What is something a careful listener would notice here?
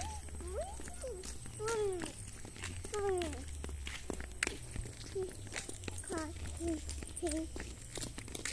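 Sandals scuff and patter on a concrete path.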